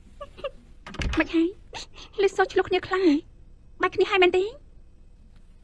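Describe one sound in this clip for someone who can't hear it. A young woman speaks sharply and with animation, close by.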